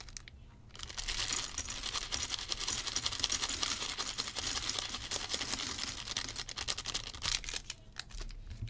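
Plastic toy bricks rattle and click as they are sorted.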